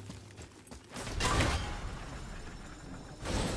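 A heavy wooden gate scrapes and rumbles as it is lifted open.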